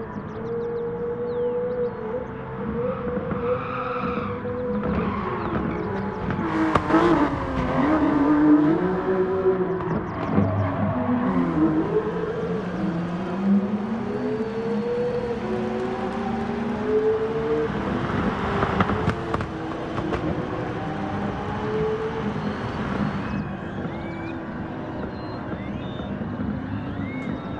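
A racing car engine roars, its pitch rising and falling as it shifts gears.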